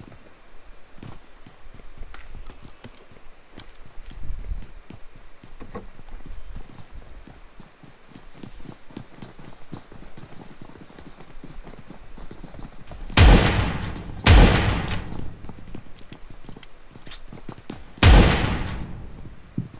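Footsteps patter quickly across floors and grass.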